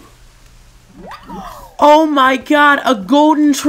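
A young man exclaims excitedly close to a microphone.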